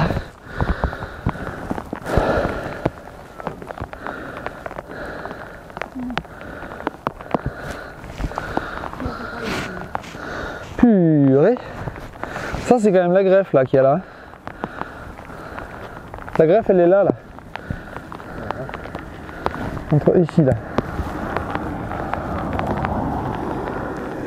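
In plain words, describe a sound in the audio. Dry wood creaks and rustles in a man's hands.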